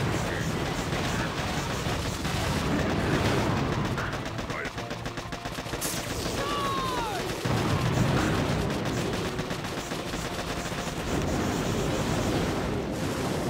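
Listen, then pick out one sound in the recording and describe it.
Gunfire and explosions rattle and boom in a game battle.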